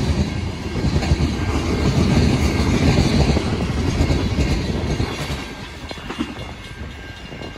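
Freight cars rumble and clatter past close by.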